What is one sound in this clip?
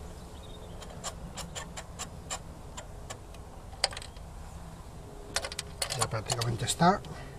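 A dipstick slides and clicks as it is drawn out of an engine tube.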